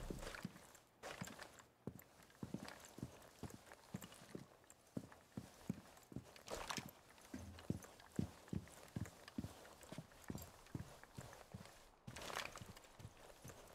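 Footsteps thud steadily on hard floors.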